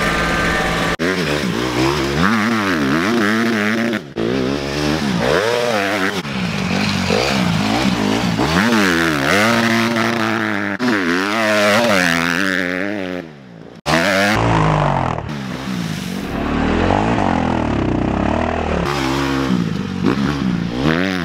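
A small dirt bike engine revs up and down.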